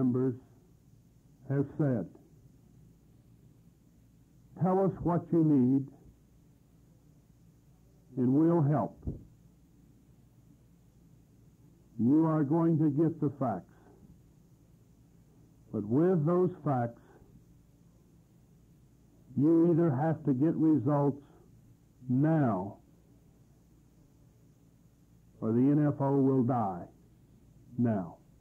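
A man speaks slowly in short phrases, with long pauses between them.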